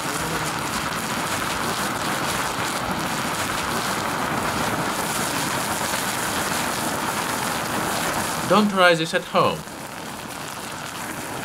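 Sparks crackle and spit from the fire.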